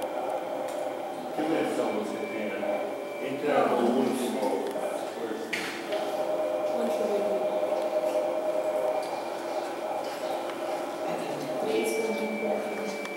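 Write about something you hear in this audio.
A man speaks calmly to a room, slightly distant.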